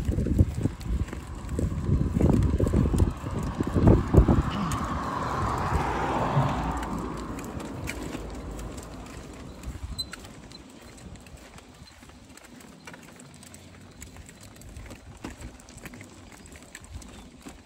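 Plastic tricycle wheels rattle and rumble over a concrete footpath.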